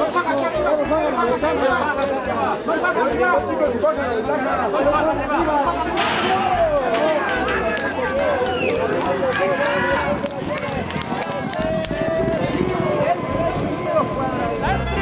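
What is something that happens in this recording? A crowd of men shouts and cheers excitedly outdoors.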